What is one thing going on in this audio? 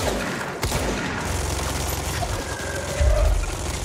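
Heavy debris crashes to the ground.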